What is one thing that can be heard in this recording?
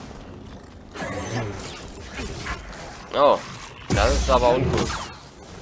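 A lightsaber hums and whooshes as it swings.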